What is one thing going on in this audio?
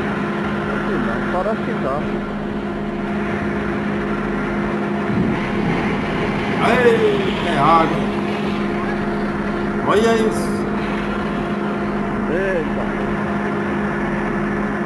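A drilling rig engine drones steadily.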